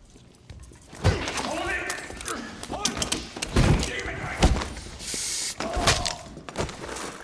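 Men scuffle with heavy thuds and grunts.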